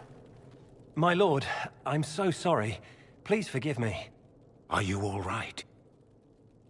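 A man apologises in a pleading voice.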